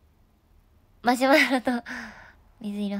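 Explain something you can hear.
A young woman speaks close to a microphone in a high, animated voice.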